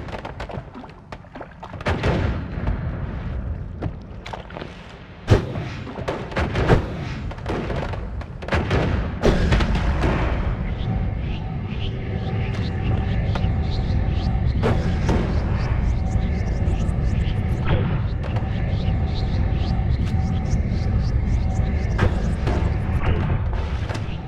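Magic spells burst and crackle with sharp bangs.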